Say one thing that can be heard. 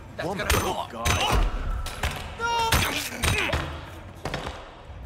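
Blows thud as a man punches and struggles with another man.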